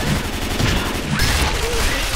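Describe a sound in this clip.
A blade slashes and thuds into flesh.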